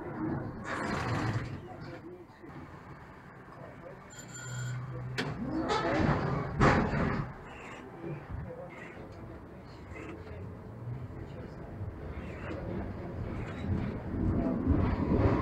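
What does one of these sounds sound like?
A tram's motor hums and its wheels rumble along the rails.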